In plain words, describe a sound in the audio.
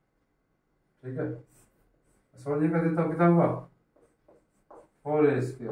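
A middle-aged man speaks in a close, calm voice.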